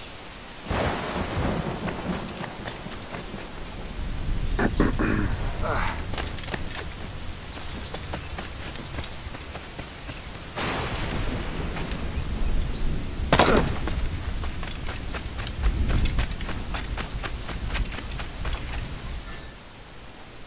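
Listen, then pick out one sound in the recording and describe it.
Waves wash against a shore.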